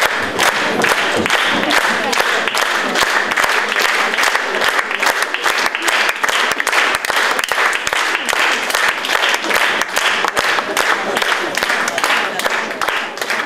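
Children's feet stamp and tap on a wooden stage in quick rhythm.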